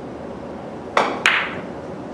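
A cue strikes a billiard ball with a sharp tap.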